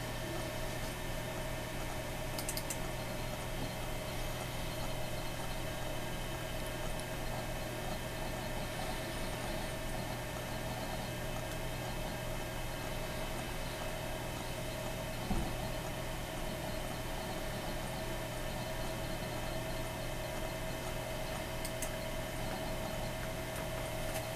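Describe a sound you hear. A computer hums steadily close by.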